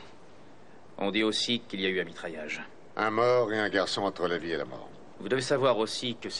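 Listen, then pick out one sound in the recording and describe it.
A younger man speaks calmly in reply.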